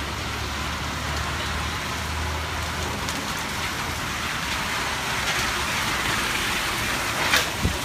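Bus tyres hiss on the wet road.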